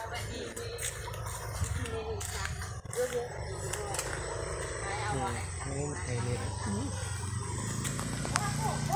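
Leaves and branches rustle and snap as a man pushes through dense bushes.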